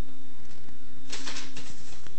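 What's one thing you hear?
Paper crinkles as a man unfolds it.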